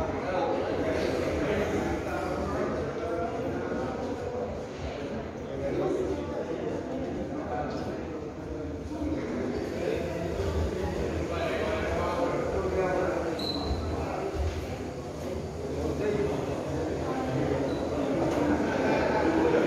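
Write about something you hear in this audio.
Several men and women talk and call out in a large echoing hall.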